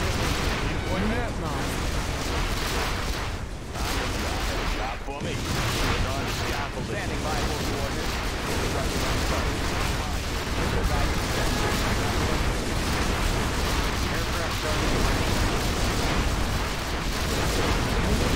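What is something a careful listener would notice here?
Laser beams zap and hum continuously.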